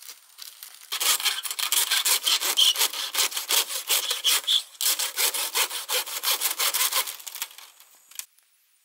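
A blade chops and splits bamboo with rapid cracking strokes.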